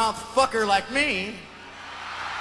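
A man shouts a drawn-out sung phrase into a microphone on a loudspeaker system.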